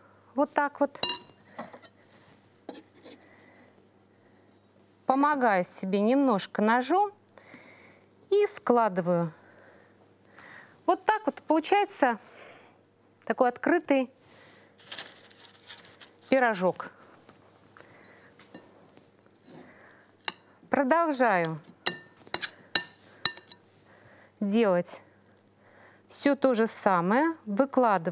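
A woman talks calmly, close to a microphone.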